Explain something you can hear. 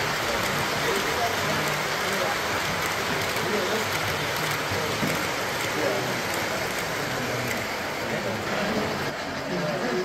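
Men talk with a lively murmur nearby.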